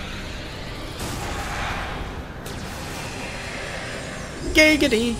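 An energy beam fires with a rushing roar.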